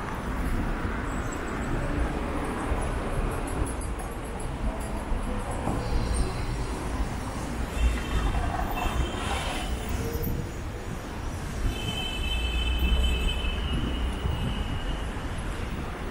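Electric scooters hum past on a city street.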